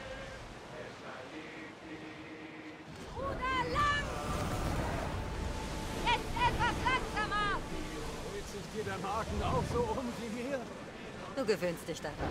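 Waves wash and splash against a sailing ship's hull.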